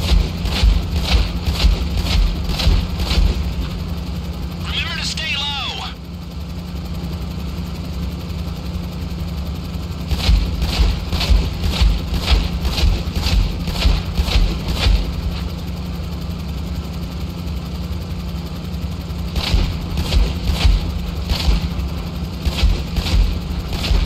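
A tiltrotor aircraft's engines and rotors drone steadily.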